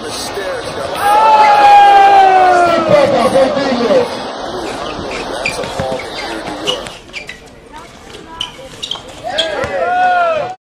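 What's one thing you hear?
Sneakers squeak sharply on a hard outdoor court.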